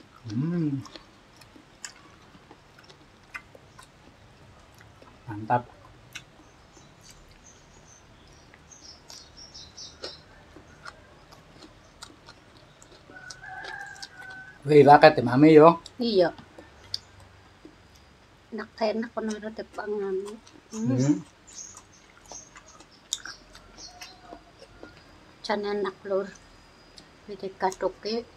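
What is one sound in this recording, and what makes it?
Fingers tear and pick at food with soft crackles.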